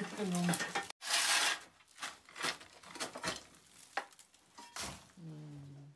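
A metal shovel scrapes and crunches into a pile of charcoal on a hard floor.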